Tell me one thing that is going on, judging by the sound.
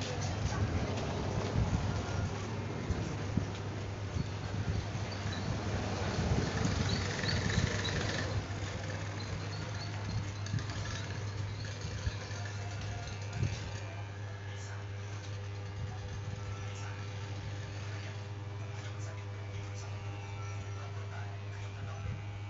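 Electric hair clippers buzz steadily, close by.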